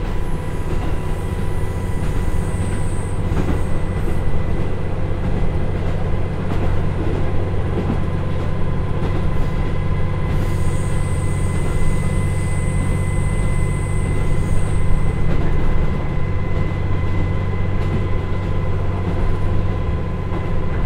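A diesel train engine hums and rumbles steadily.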